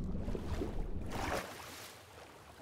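Water splashes once as a swimmer breaks the surface.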